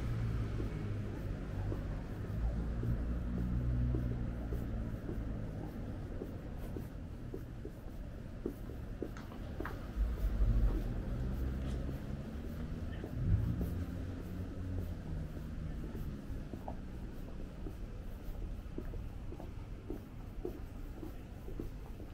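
Footsteps tap steadily on pavement outdoors.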